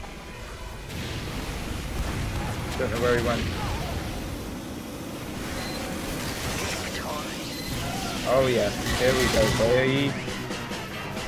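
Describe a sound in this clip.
A flamethrower roars with a steady hiss.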